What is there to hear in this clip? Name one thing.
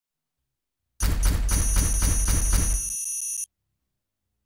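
A counter ticks rapidly as scores tally up.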